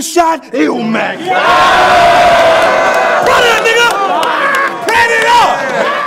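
A crowd of young men cheers and shouts in an echoing hall.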